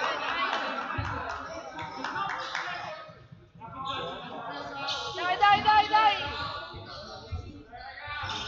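A basketball bounces on a wooden floor with hollow thumps.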